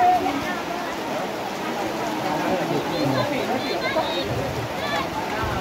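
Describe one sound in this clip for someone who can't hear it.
Children shout and call out excitedly outdoors.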